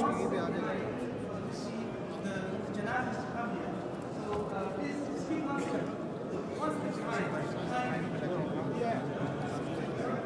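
A large crowd of men murmurs and talks all around in a large echoing hall.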